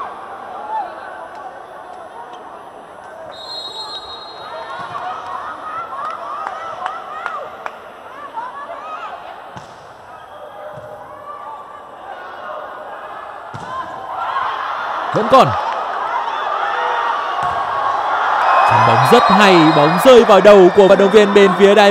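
Young women shout and cheer in celebration.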